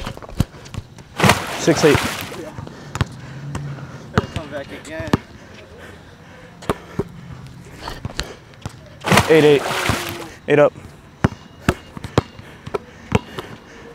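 A basketball bounces repeatedly on an outdoor court.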